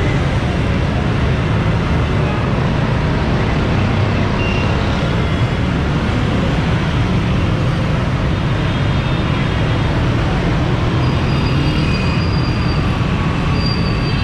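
Busy traffic rumbles steadily outdoors.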